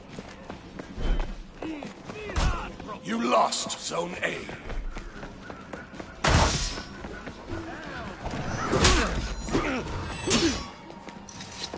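Steel blades clash and ring in a fierce fight.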